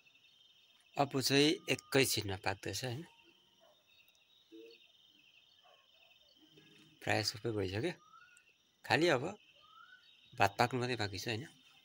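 A young man talks close by in short bursts.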